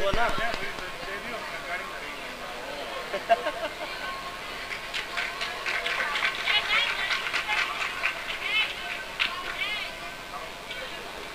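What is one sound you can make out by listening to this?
A woman speaks into a microphone, heard through loudspeakers outdoors.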